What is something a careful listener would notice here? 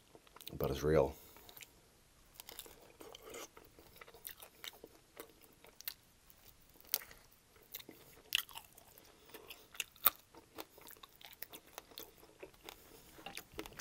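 A man chews and smacks wet, saucy chicken wings close to a microphone.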